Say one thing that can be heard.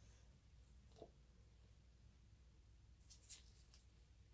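A plastic mould taps lightly against a plastic cup as it is lifted off.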